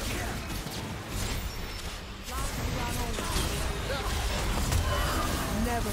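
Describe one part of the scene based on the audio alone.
Magic spells whoosh and crackle amid clashing battle effects.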